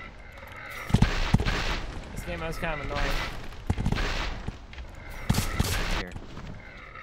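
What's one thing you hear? Explosions boom in quick bursts.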